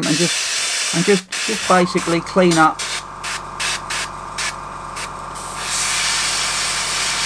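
An airbrush hisses in short bursts.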